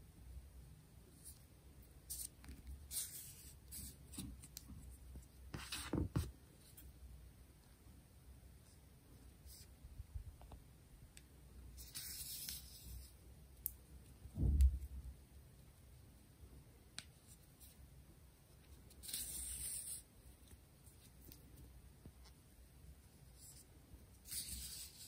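Yarn rustles softly as it is pulled through knitted stitches by hand.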